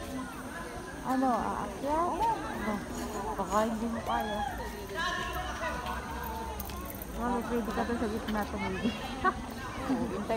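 A crowd of people chatters and calls out in the distance outdoors.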